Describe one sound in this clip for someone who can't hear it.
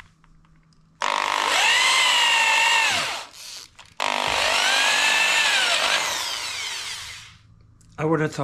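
A power drill whines as it bores into wood, slowing and speeding up.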